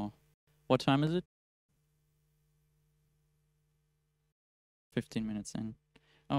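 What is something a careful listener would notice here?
A young man speaks calmly into a microphone, in short bursts with long pauses.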